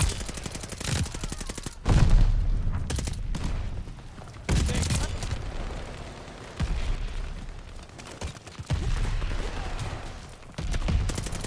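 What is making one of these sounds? Rapid machine-gun fire rattles in quick bursts.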